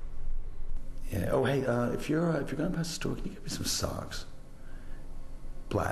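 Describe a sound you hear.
A man speaks on a phone, close by, in a calm voice.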